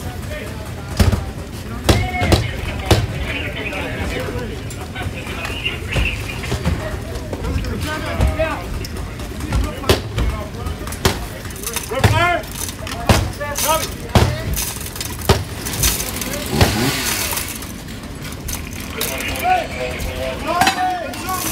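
Firefighters chop at a roof with axes in sharp, repeated blows.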